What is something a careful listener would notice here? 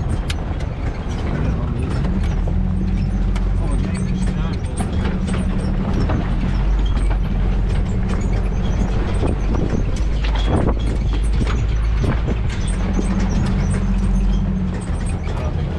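Dry bushes scrape along the side of a vehicle.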